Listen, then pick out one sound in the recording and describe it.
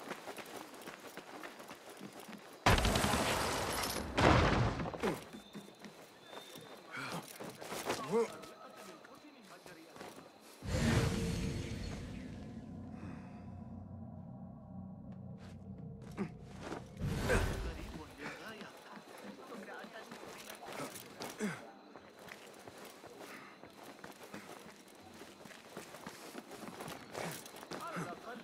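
Footsteps patter and scrape on wooden boards and stone.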